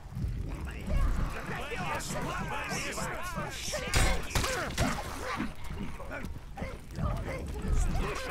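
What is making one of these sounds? Weapon blows thud and clash in a fight.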